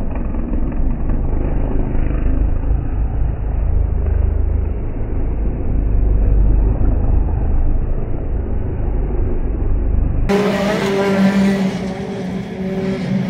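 Racing car engines roar and whine as the cars speed past.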